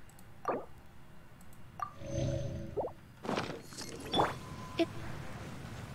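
Soft game menu chimes and clicks sound.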